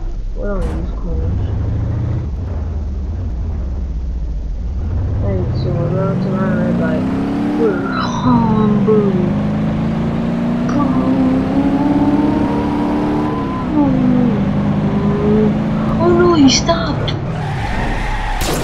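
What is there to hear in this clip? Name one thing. A van engine idles, then revs and accelerates with a rising whine.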